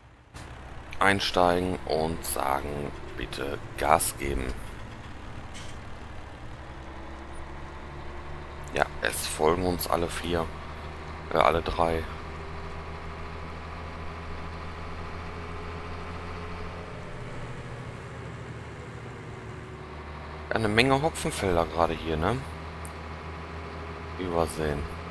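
A diesel truck engine drones as the truck drives along.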